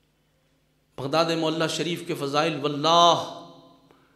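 A middle-aged man speaks forcefully into a microphone.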